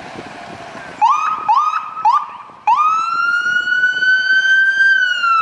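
A fire engine siren gives short whoops, then wails steadily up close.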